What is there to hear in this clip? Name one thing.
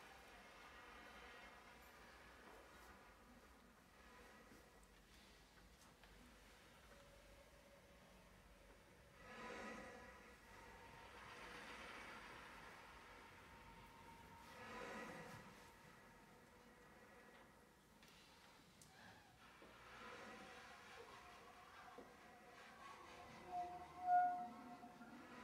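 A saxophone plays a soft, breathy melody.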